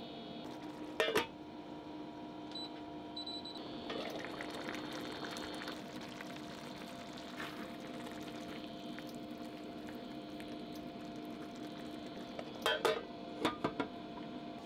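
A metal lid clinks onto a frying pan.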